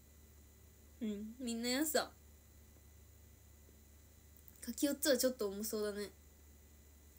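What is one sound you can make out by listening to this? A young woman speaks softly, close to a phone microphone.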